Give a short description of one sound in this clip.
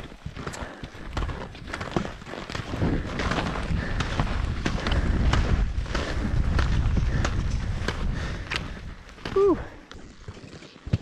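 Skis swish and crunch through snow.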